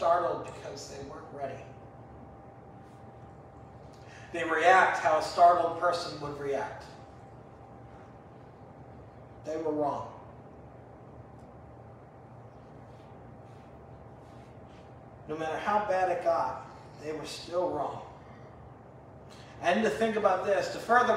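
A man speaks calmly through a microphone in an echoing hall, pausing between phrases.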